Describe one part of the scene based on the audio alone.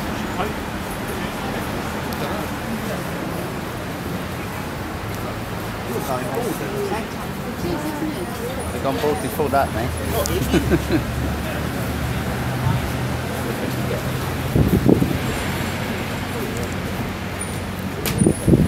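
Voices of a small crowd of men and women chatter nearby outdoors.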